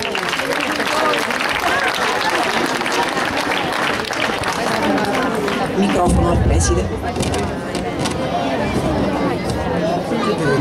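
A crowd of people murmur and chatter close by.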